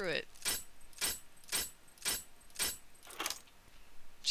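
Metal lock pins click sharply in quick succession.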